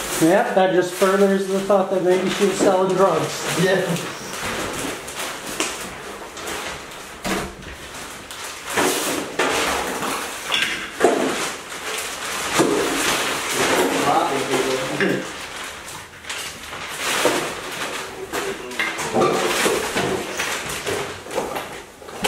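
Plastic trash bags rustle and crinkle.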